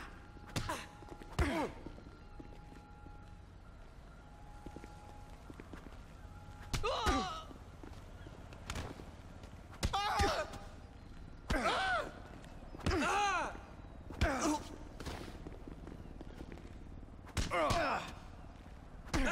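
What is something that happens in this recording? Fists thump hard against a body again and again.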